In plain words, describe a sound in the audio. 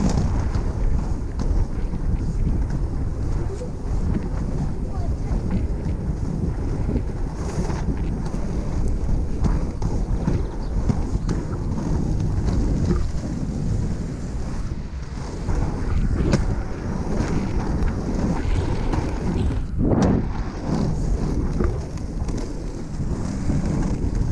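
Wind buffets close by outdoors.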